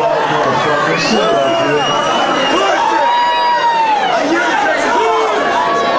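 A man shouts into a microphone over loudspeakers.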